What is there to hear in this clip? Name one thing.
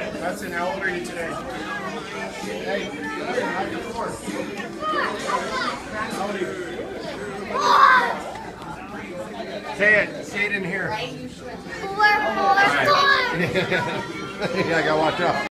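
A crowd of children and adults chatters all around in an echoing room.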